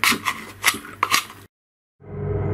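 A fork scrapes food out of a tin can.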